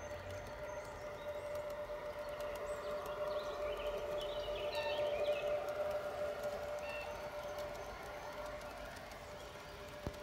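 A garden-scale model train rumbles along its rails and hums.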